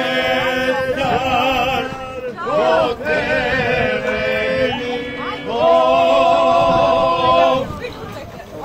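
People sing loudly together outdoors.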